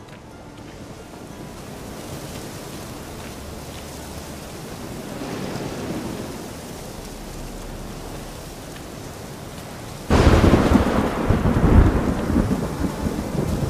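Footsteps tread on forest ground.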